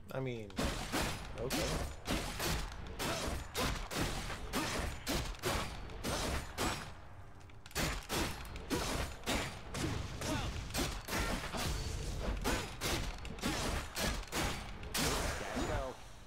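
Game sound effects of sword strikes and combat play.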